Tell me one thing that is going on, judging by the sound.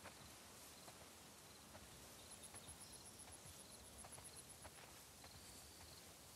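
Footsteps swish through tall dry grass.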